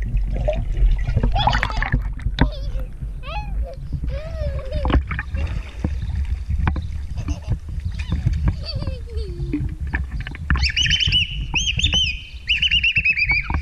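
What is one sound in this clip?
A young girl talks and squeals excitedly up close.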